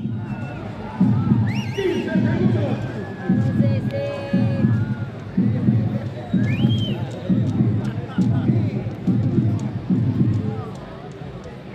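A crowd claps and bangs in a steady rhythm.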